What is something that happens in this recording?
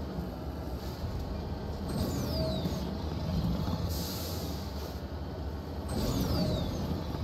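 A vehicle engine rumbles steadily over rough ground.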